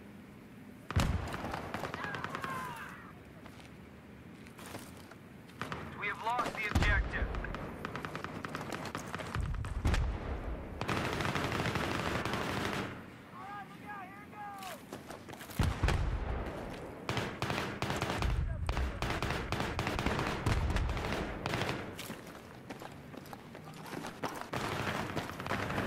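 Rifle gunfire rattles in rapid bursts, echoing in a large hall.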